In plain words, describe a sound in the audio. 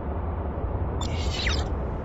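A spaceship engine whooshes with a quick falling whine.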